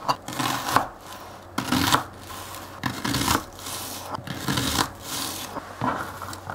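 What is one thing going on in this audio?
A knife slices through an onion on a cutting board with crisp thuds.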